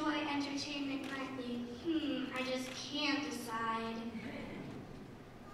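A girl sings on a stage, heard through a microphone in a large hall.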